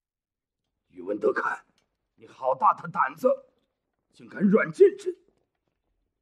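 A man speaks sternly, close by.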